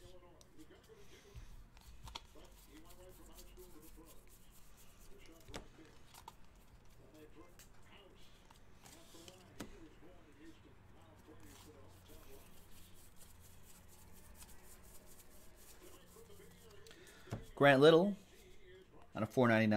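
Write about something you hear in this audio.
Cards shuffle and flick through hands.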